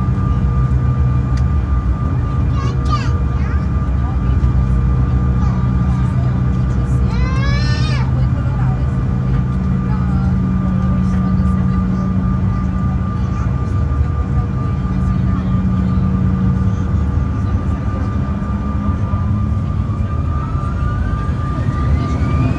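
Jet engines hum and whine steadily as an airliner taxis.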